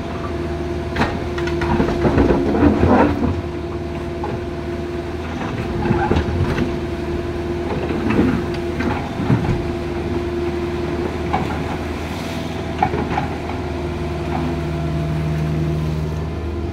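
Rocks knock and scrape against an excavator bucket.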